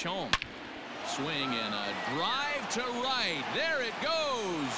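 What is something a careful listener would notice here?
A crowd cheers loudly after a hit.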